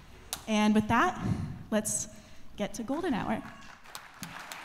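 A woman speaks into a microphone in a large hall.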